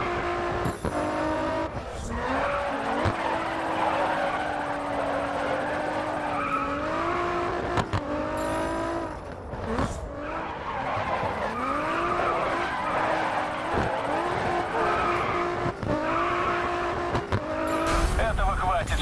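A car engine revs and whines, rising and falling as gears change.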